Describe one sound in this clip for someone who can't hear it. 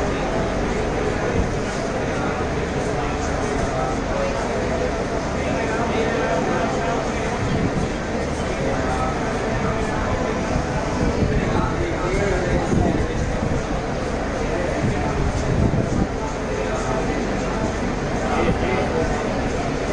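A group of men and women chant together in unison.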